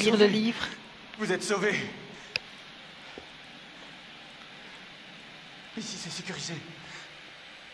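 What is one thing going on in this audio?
A young man speaks quietly and urgently, close by.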